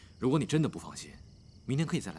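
A man speaks calmly and closely.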